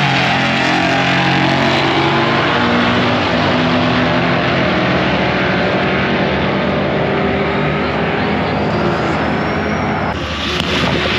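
Drag racing cars roar loudly as they launch and speed away down the track.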